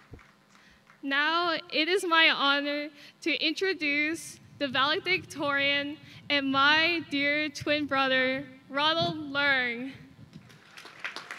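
A young woman sings through a microphone outdoors.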